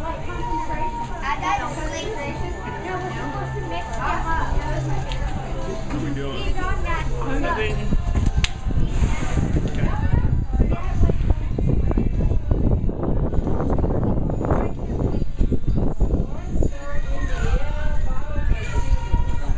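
Several adults chat casually nearby outdoors.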